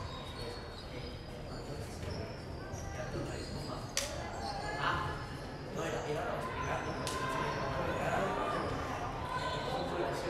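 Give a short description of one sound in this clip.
Several men talk at a distance in a large echoing hall.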